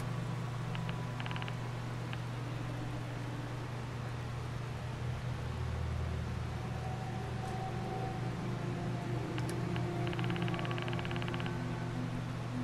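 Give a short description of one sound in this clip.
Soft clicks tick quickly as items are scrolled through.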